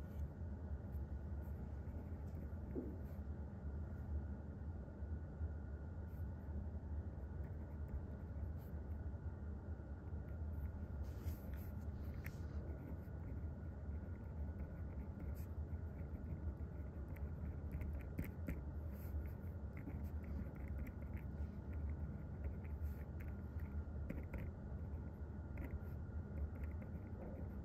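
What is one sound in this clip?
A pen scratches and taps softly on paper.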